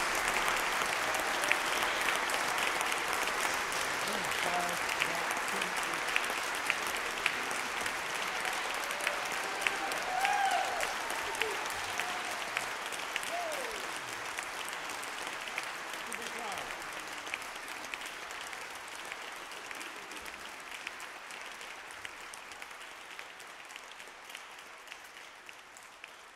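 A large audience applauds in an echoing hall, slowly fading.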